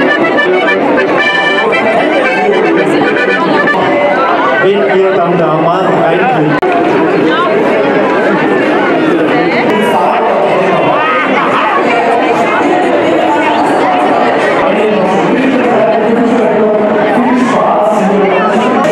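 A large crowd chatters and laughs outdoors.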